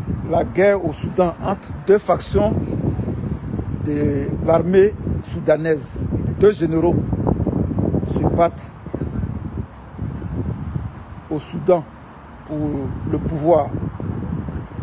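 A middle-aged man speaks close to a microphone, outdoors in light wind.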